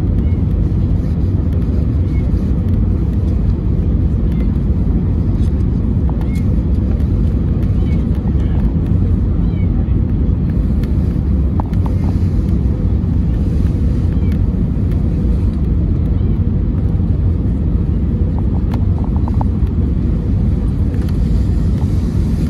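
Jet engines and rushing air roar as an Airbus A320neo is heard from inside the cabin.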